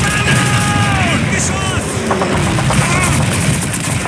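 Shells explode nearby with heavy booms.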